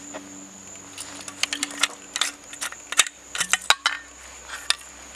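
A metal canteen's cap clicks and rattles as it is unscrewed.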